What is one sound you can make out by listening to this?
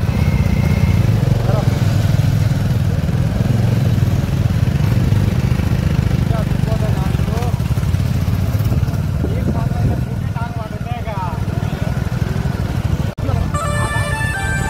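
Young men talk and call out over the engines.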